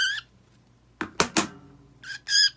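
Nail clippers snip sharply.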